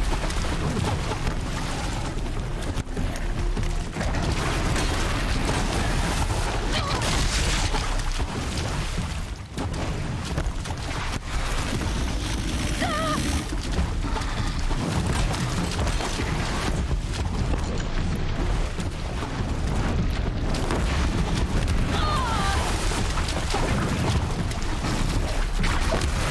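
Water splashes as a person wades through it.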